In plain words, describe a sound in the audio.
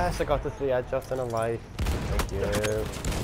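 Rifle shots crack close by in a video game battle.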